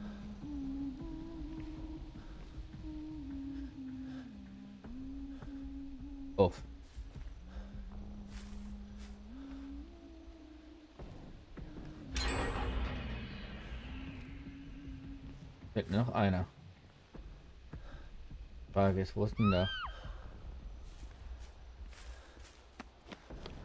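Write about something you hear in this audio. Footsteps walk softly on pavement.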